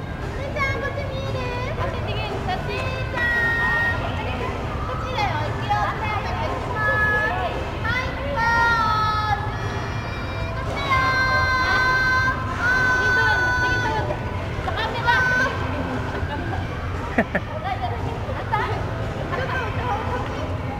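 A dolphin whistles and squeaks in high chirping calls.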